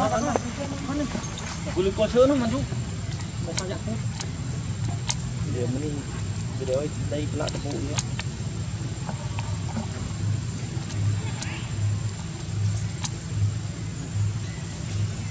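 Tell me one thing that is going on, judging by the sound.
Dry leaves rustle under a walking monkey's feet.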